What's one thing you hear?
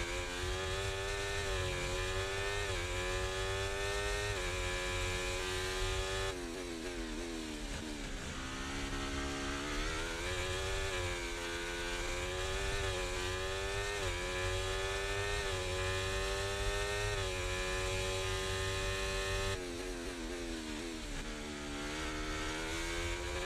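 A racing car engine screams at high revs, rising through the gears and dropping sharply when braking.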